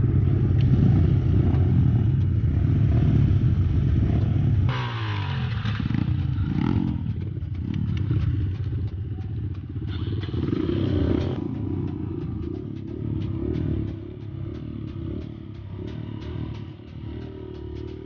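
A dirt bike engine idles close by with a low rumble.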